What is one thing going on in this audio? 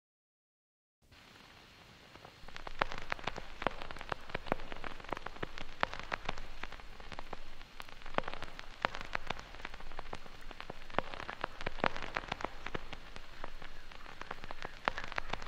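A vinyl record crackles and pops as it spins.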